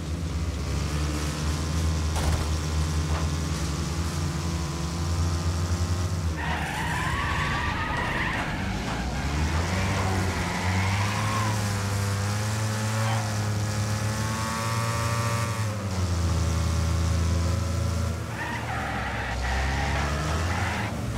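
A car engine roars and revs up and down as it races.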